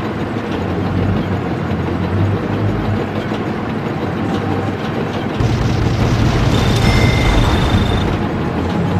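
A tank's tracks clank over a dirt road.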